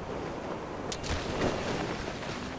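A body slams hard onto the ground with a thud.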